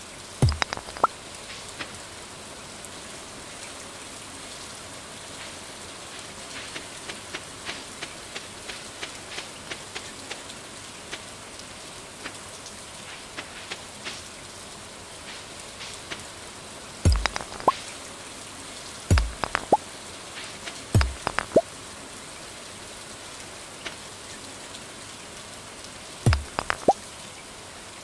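Short popping blips sound as small items are picked up.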